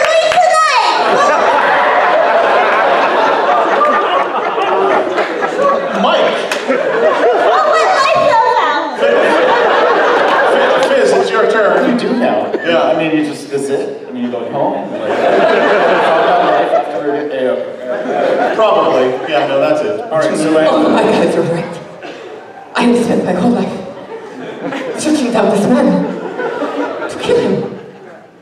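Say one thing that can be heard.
A man speaks into a microphone in a large hall, heard through loudspeakers.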